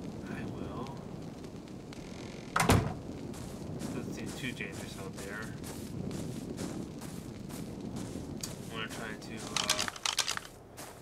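A torch fire crackles and hisses softly.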